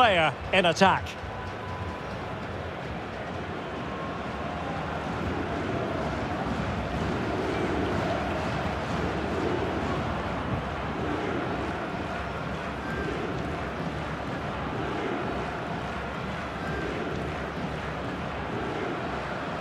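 A large stadium crowd roars and chants in the distance.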